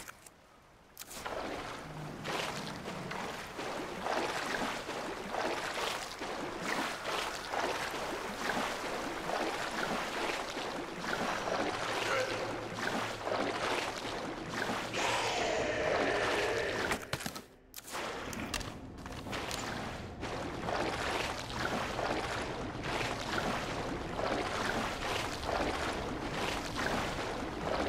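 Footsteps splash and slosh through deep water in an echoing tunnel.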